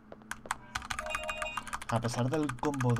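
An electronic keypad beeps.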